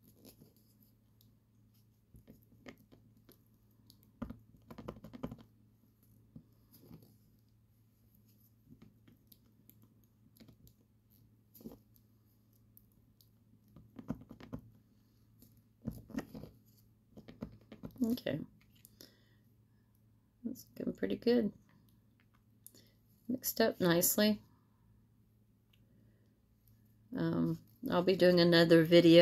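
A wooden stick scrapes and taps softly against a plastic cup while stirring.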